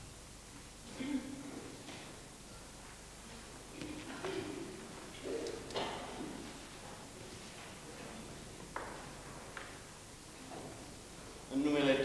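A man speaks quietly in short phrases.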